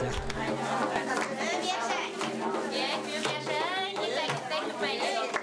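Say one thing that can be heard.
A frame drum is beaten in a steady rhythm.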